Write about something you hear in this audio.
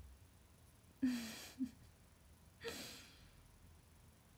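A young woman laughs breathily.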